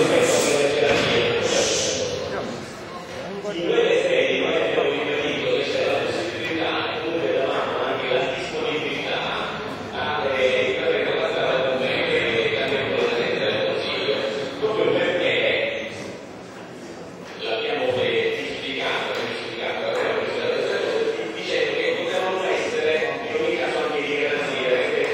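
An elderly man speaks with animation into a microphone in a large echoing hall.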